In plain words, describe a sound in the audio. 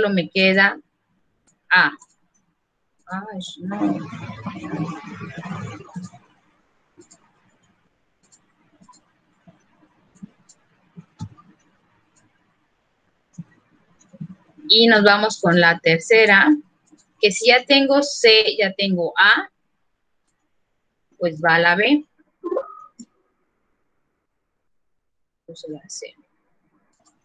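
A young woman speaks calmly through a microphone, heard as on an online call.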